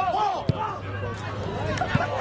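A foot strikes a ball with a thud.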